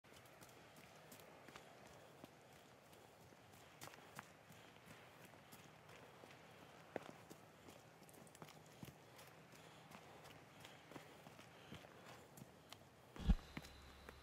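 Footsteps crunch on leaves and twigs along a dirt path.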